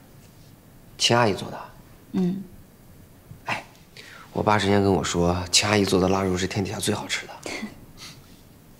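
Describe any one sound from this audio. A young man talks casually and warmly, close by.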